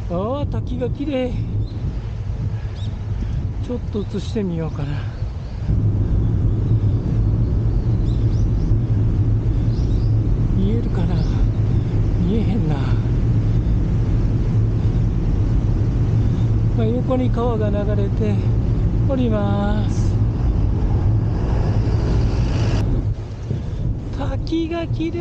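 Wind rumbles and buffets loudly.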